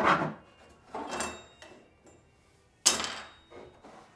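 A hammer taps on wood a few times.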